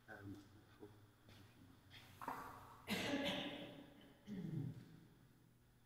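An elderly man speaks quietly in a large echoing hall.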